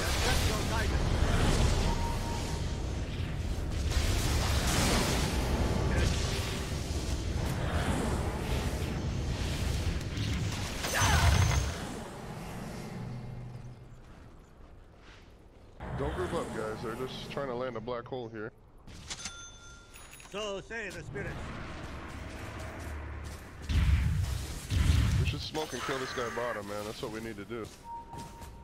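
Spell effects and weapon clashes crackle and boom in a busy fight.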